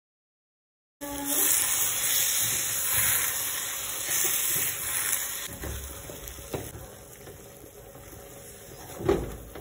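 Sauce simmers and sizzles in a frying pan.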